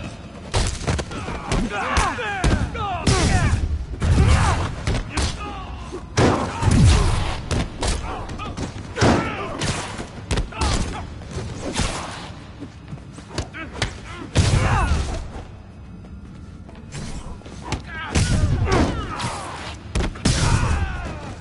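Punches and kicks land with heavy thuds in a fast fight.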